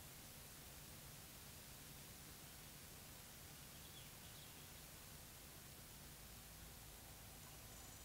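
An elk tears and chews grass close by.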